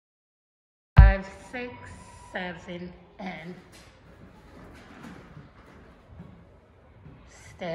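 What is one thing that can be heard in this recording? Bare feet pad and thump on a wooden floor.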